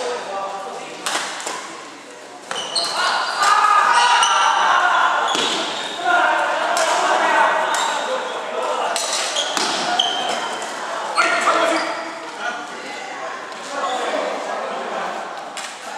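Sneakers squeak and pad on a wooden floor.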